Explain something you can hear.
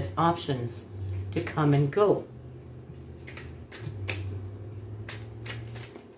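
Cards shuffle and rustle in a woman's hands.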